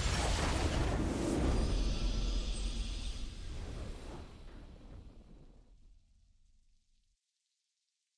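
A triumphant game fanfare plays and fades out.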